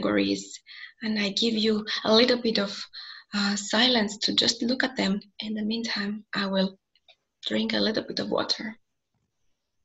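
A young woman speaks calmly over a microphone, as if in an online call.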